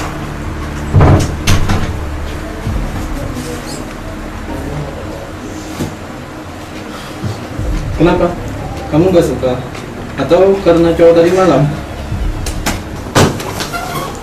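Knocks and thumps sound in a small room.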